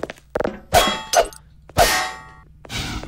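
A metal crowbar clangs sharply against a tiled wall several times.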